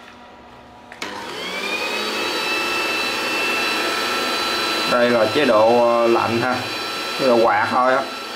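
A heat gun blows with a steady whirring roar.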